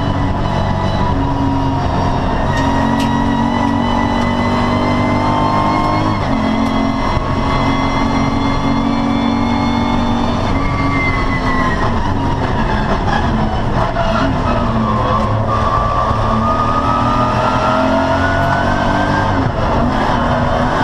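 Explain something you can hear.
Wind rushes steadily against the car.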